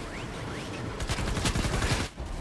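A laser gun fires in rapid, sharp bursts.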